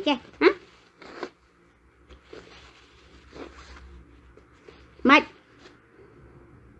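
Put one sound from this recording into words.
A woman sniffles and sobs.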